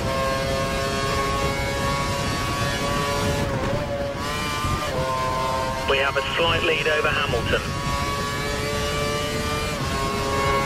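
A Formula One car's V8 engine screams at high revs.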